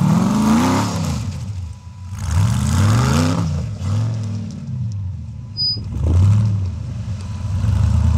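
An off-road buggy engine revs up and down loudly, close by.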